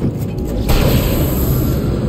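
A shotgun fires with a loud boom.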